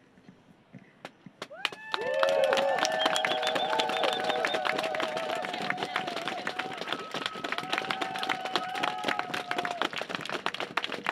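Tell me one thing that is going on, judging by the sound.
People clap their hands in rhythm.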